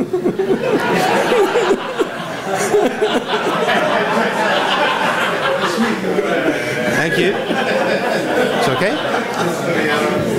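A second man talks and laughs.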